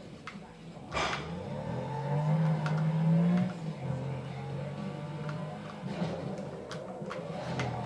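A racing car engine roars and revs in a video game.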